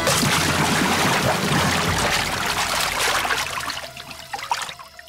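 Water splashes and churns loudly, then settles into patters of falling drops.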